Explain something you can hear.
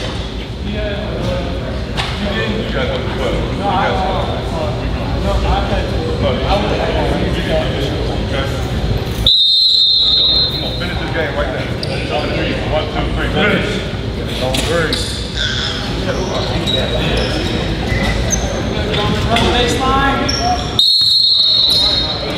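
Young men talk and call out together in an echoing gym.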